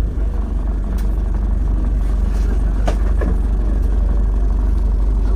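City traffic rumbles along a busy street.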